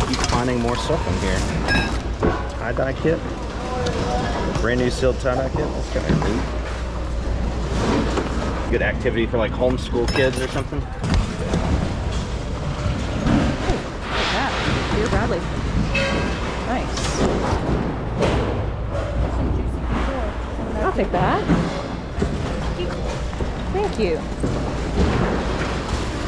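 Plastic and fabric rustle as hands rummage through a bin of items.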